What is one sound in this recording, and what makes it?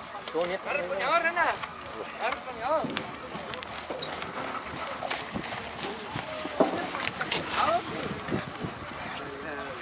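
Horse hooves thud on soft dirt.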